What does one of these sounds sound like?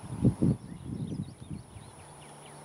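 Wind gusts briefly rumble across the microphone outdoors.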